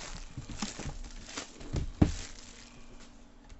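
Plastic wrap crinkles and rustles as it is handled.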